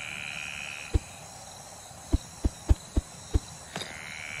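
An axe chops into a wooden trunk with sharp knocks.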